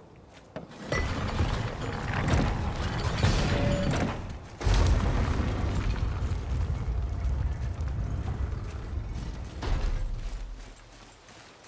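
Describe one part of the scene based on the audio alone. Heavy stone doors grind and rumble open.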